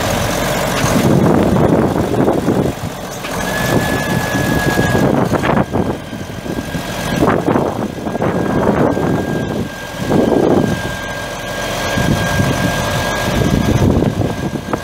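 A large diesel tractor engine rumbles close by, revving up and down.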